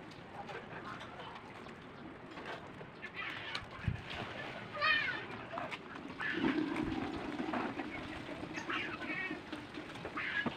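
A hand scrubs a soapy motorbike with a wet rustle.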